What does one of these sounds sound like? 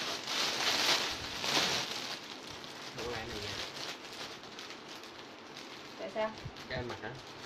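Plastic wrapping rustles and crinkles loudly.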